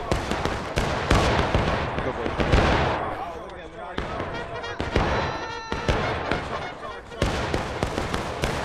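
Rifle shots crack and boom all around in rapid bursts.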